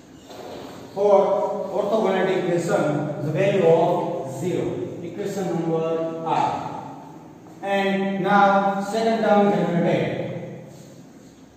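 A young man explains calmly, speaking up.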